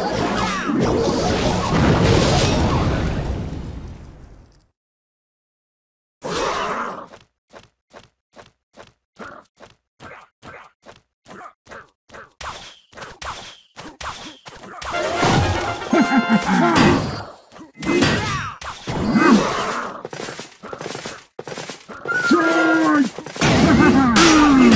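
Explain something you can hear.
Game sound effects clash and thump as small figures fight.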